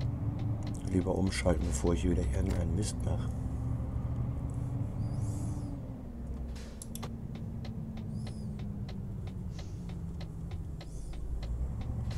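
A truck engine rumbles steadily at low speed.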